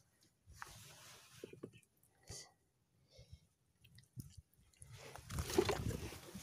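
Hands pull and rustle a nylon fishing net.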